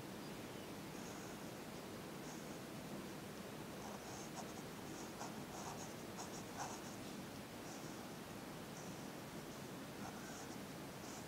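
A pencil scratches in short strokes on paper.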